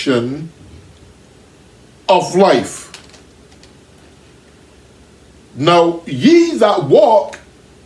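A man preaches with animation, in short bursts with pauses.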